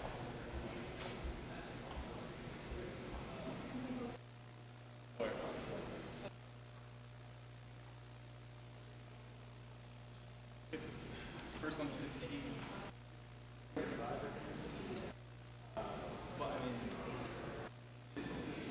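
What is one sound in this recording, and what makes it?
A man speaks calmly through a microphone in a large room, with pauses.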